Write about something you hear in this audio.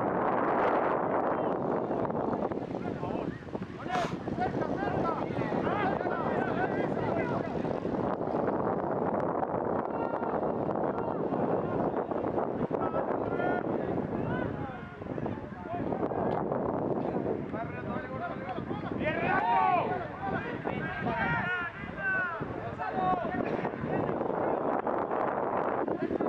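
A crowd of spectators cheers and calls out outdoors.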